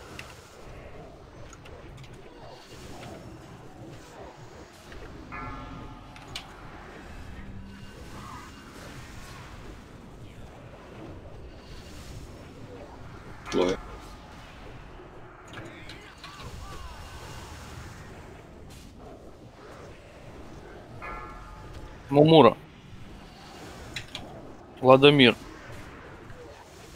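Spells and weapons clash and crackle in a game battle.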